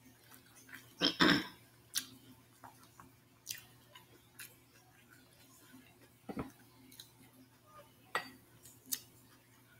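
Shells crack and food rustles as a woman eats with her hands.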